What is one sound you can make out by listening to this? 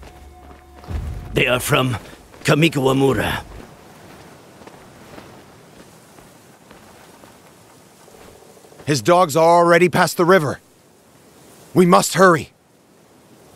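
A man speaks in a low, firm voice.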